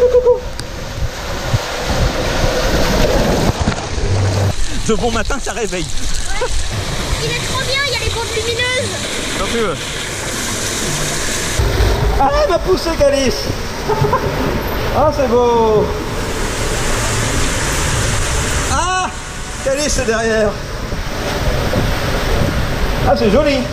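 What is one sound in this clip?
Water rushes and splashes down a slide tube.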